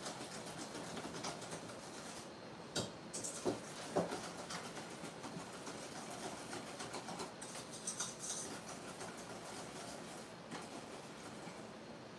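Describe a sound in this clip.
A whisk clinks rapidly against a metal bowl.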